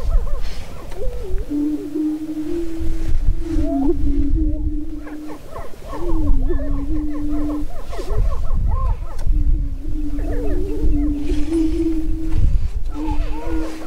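Wind rumbles across open ground.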